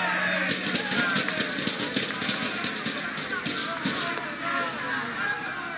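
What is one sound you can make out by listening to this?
A crowd of young men cheers and shouts outdoors.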